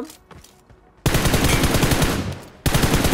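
Game gunfire rattles off in rapid bursts.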